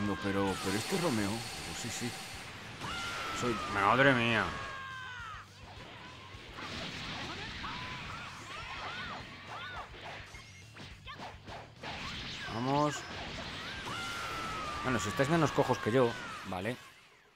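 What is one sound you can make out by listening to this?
Energy blasts whoosh and roar.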